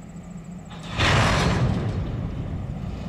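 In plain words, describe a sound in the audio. Freight car couplers slam together with a loud bang.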